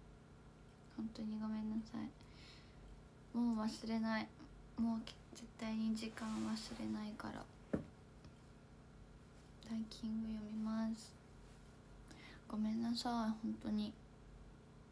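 A young woman speaks softly and closely into a microphone, in short bursts with pauses.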